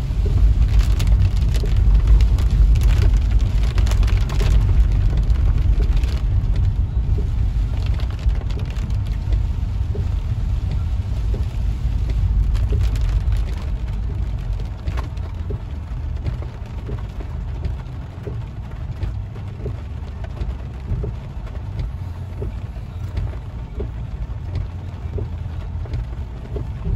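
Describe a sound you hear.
Heavy rain pours down and drums on a car's roof and windshield.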